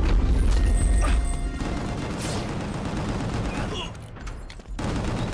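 Gunshots and blows crack in quick bursts.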